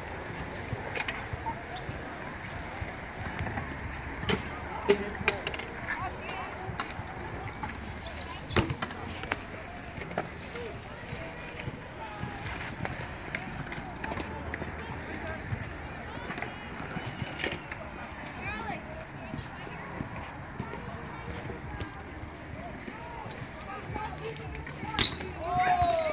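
Skateboards clack and slap on concrete.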